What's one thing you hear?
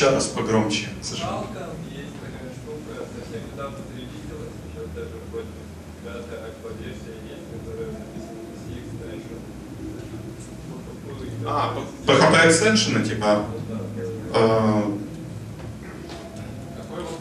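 A young man speaks through a microphone in a large echoing hall.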